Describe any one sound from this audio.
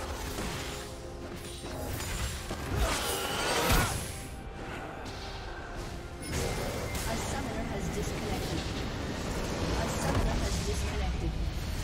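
Game spells and weapons clash and blast in a busy battle.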